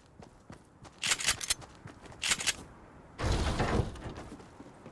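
Wooden planks knock and clatter as they are quickly built into a ramp.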